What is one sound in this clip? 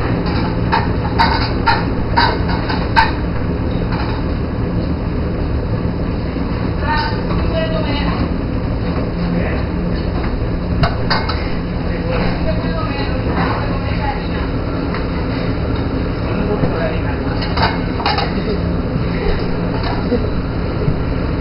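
Metal pans and utensils knock and clank now and then.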